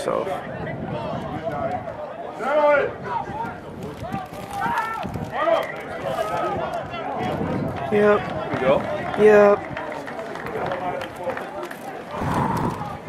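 Players and spectators shout across an open field outdoors.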